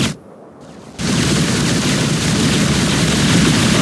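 Weapons fire and blasts roar in a loud battle.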